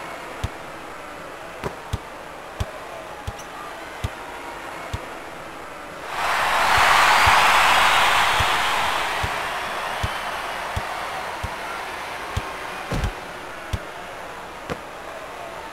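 A basketball bounces on a hardwood court with sharp thuds.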